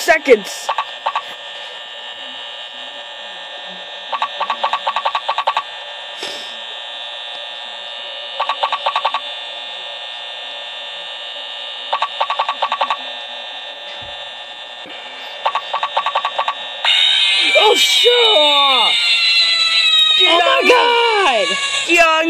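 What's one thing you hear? A tablet game plays a steady electronic hum through a small speaker.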